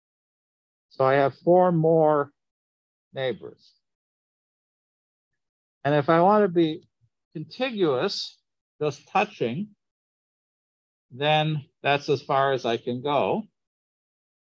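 A man explains calmly, heard through an online call.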